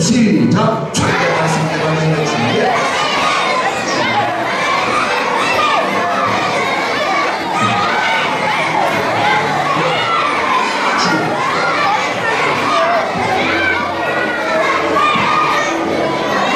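A crowd of children shouts and chatters loudly.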